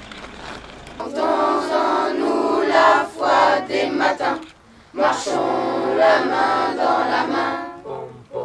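A children's choir sings together outdoors.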